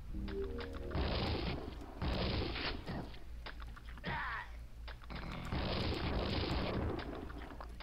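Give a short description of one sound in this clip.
A lightning gun crackles and buzzes loudly.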